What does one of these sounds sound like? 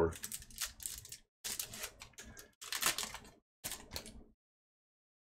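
A foil wrapper crinkles and tears as a pack is opened.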